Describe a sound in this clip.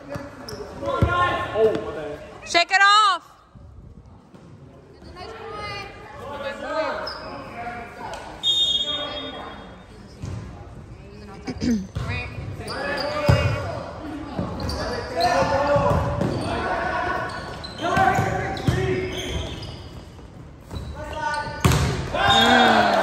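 A volleyball is hit with dull slaps.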